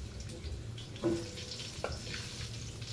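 Metal tongs clink against the pan.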